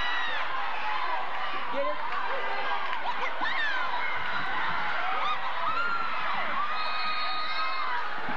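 A large crowd cheers and shouts loudly in an echoing gym.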